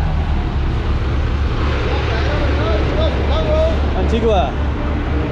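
A bus engine idles with a deep, steady rumble close by.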